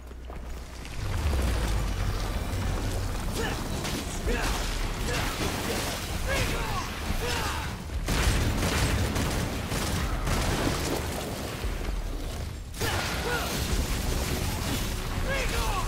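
Swords clash and slash in rapid combat.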